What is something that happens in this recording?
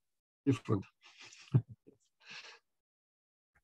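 A middle-aged man laughs softly.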